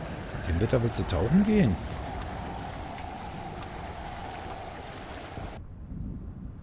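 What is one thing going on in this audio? Ocean waves wash and churn close by.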